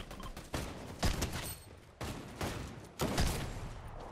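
Gunshots crack from a video game.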